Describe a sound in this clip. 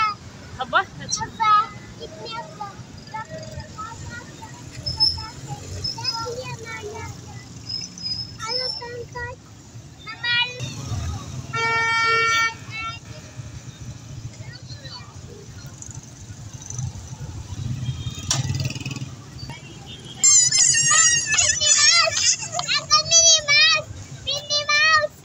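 Music with singing plays loudly from a loudspeaker nearby.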